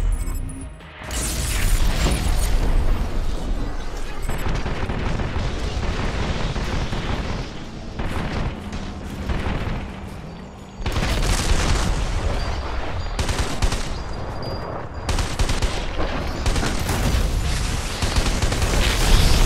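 A rapid stream of gunfire roars steadily.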